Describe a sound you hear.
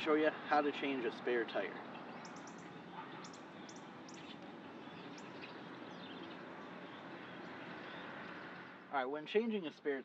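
A young man speaks calmly and clearly, close by, outdoors.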